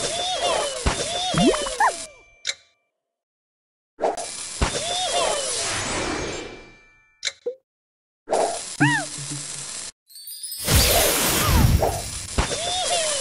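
Cheerful chimes and popping effects burst as game pieces match and clear.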